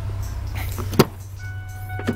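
A truck door clicks open.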